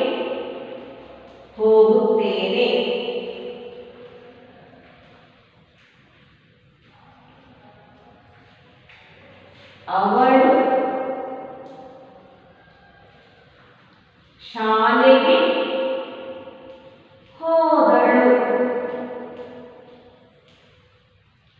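A woman speaks slowly and loudly, echoing in a bare room.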